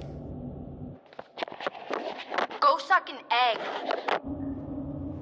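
A young woman speaks in a frightened, urgent voice.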